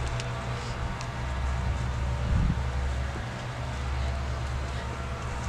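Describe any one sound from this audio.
A man's footsteps tread softly across grass.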